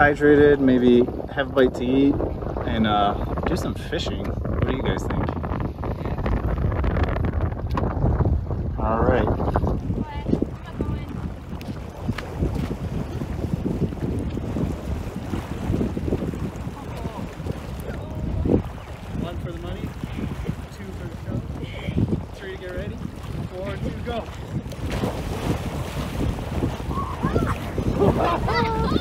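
Wind blows hard across open water.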